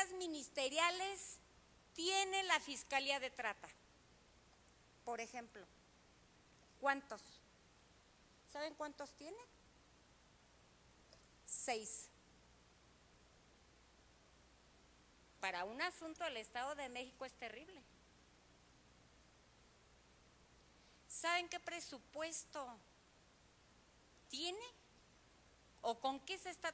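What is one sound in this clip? A middle-aged woman speaks forcefully into a microphone, with long pauses between phrases.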